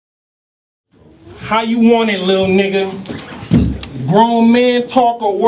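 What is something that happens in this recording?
A young man raps loudly and forcefully up close.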